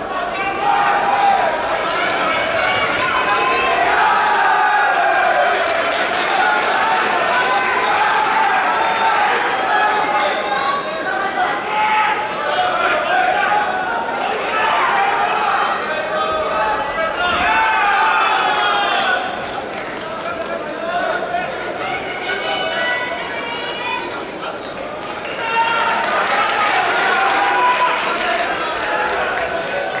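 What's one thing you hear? A crowd of spectators shouts and cheers throughout a large echoing hall.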